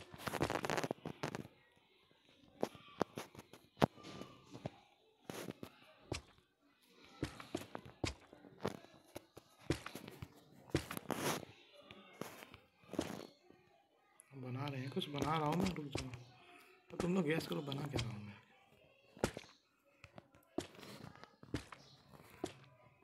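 Blocks are placed one after another with short soft thuds.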